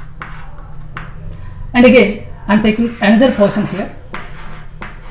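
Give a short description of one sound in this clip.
Chalk scratches and taps on a board.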